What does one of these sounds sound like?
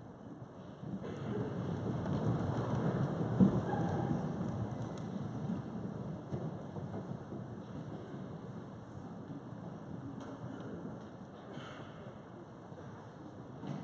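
A large crowd shuffles and sits down, with a rustling murmur.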